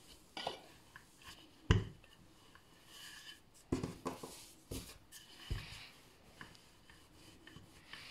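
A wooden rolling pin rolls over soft dough and knocks lightly on a hard surface.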